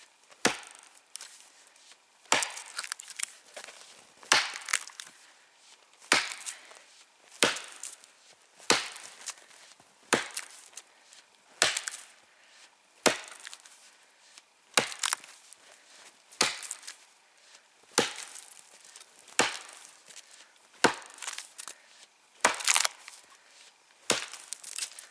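An axe chops into a tree trunk with sharp, regular blows.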